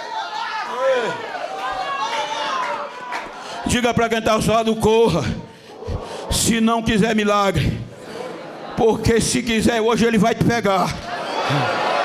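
A man preaches forcefully through a microphone and loudspeakers.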